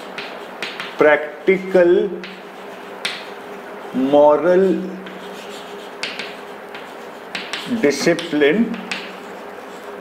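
A man speaks calmly in short phrases.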